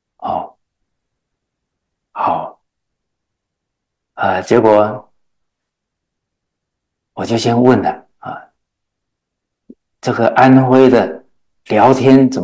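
An elderly man speaks calmly and warmly into a microphone, in short phrases with pauses.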